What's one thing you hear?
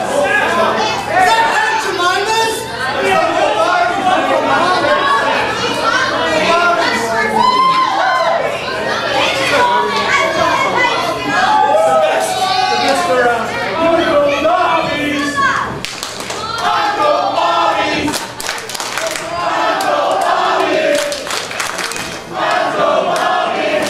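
A man speaks loudly over a microphone in an echoing hall.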